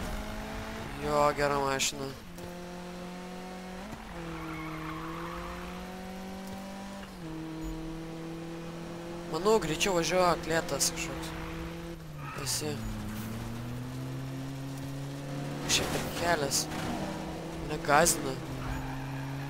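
Tyres squeal in bursts as a car drifts.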